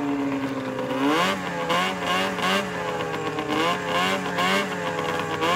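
A snowmobile engine revs up and down again and again.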